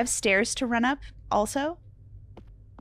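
A young woman speaks with animation into a microphone, close up.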